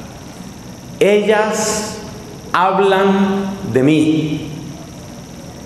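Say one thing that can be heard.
A man speaks slowly into a microphone, drawing out his words.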